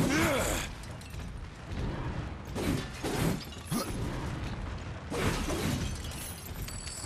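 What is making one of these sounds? Wooden barrels smash and splinter.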